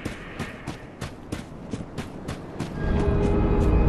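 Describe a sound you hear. Armoured footsteps crunch quickly over rough ground.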